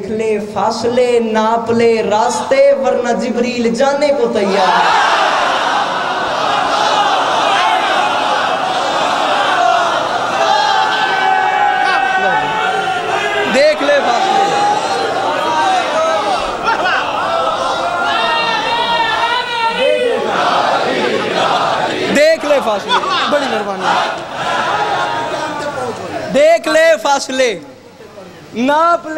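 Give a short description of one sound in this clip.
A young man recites passionately through a loudspeaker microphone.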